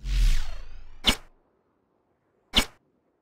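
A menu beeps with short clicks.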